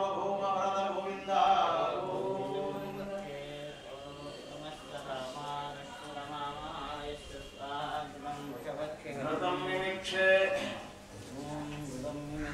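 Men chant in a steady, melodic drone nearby.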